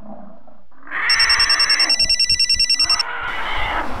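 A mobile phone rings with a rapid beeping tone.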